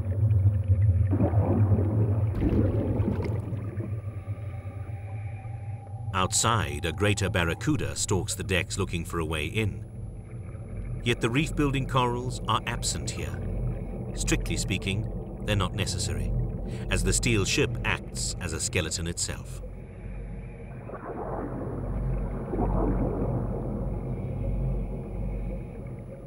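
Bubbles gurgle and burst from a diver's breathing regulator underwater.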